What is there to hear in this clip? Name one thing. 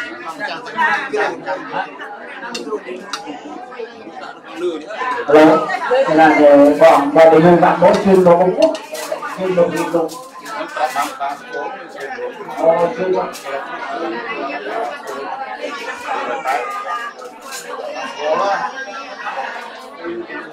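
Several men and women chatter quietly nearby.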